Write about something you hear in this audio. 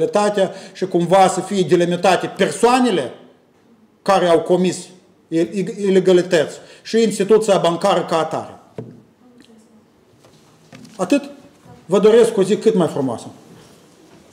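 A middle-aged man speaks firmly into a microphone in a slightly echoing room.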